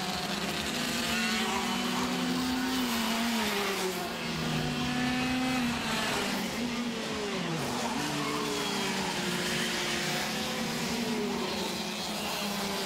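Kart engines whine loudly, rising and falling in pitch as the karts race past.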